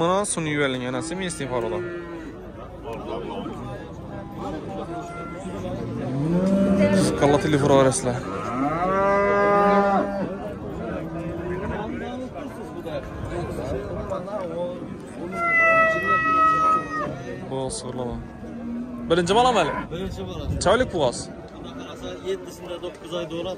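Several men talk loudly close by outdoors.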